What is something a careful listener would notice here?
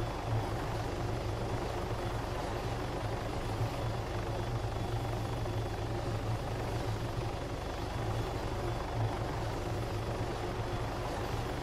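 A helicopter's rotor thumps steadily nearby.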